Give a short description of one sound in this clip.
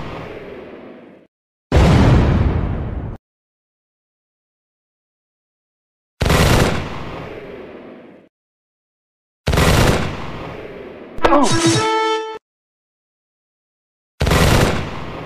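Cannons boom in loud, separate bursts, each fading into a rumble.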